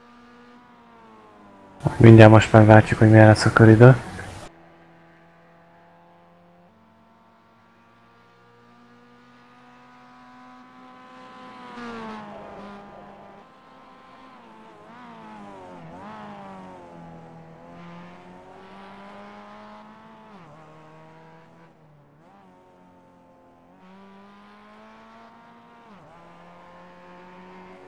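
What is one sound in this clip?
A four-cylinder race car engine revs hard and shifts through the gears.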